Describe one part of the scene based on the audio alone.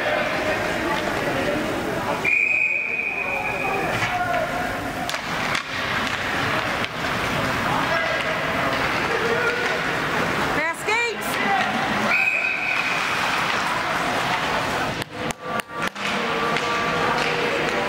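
Spectators murmur and call out in the stands.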